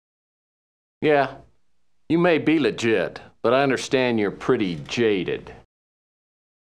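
A man speaks calmly in a low voice.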